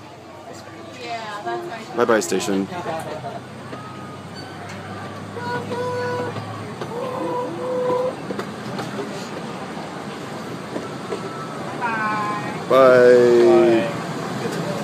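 Passengers chatter nearby.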